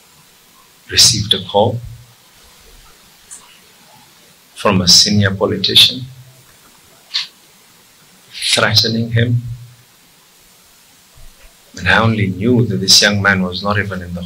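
A middle-aged man speaks firmly into microphones, in short bursts with pauses.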